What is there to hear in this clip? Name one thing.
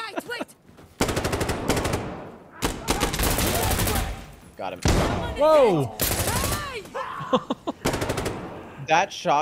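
A rifle fires rapid bursts of loud gunshots that echo.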